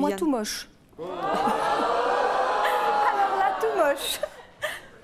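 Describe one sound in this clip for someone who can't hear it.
A woman laughs brightly nearby.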